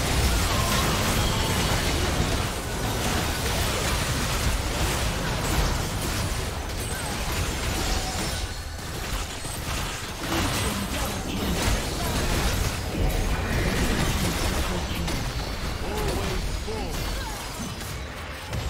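Spells and weapons blast and clash in a hectic fight.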